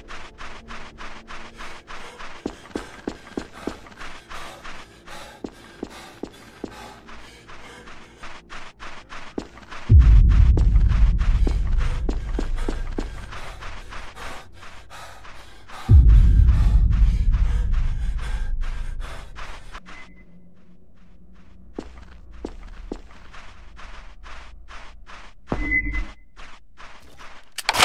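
Footsteps crunch quickly and steadily over the ground.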